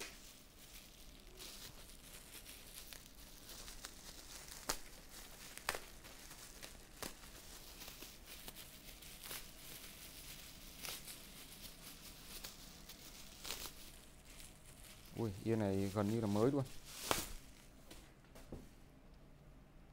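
Plastic bubble wrap crinkles and rustles as hands handle it.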